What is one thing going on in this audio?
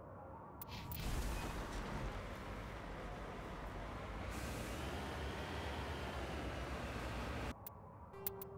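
A vehicle's engine hums steadily as it drives over rough ground.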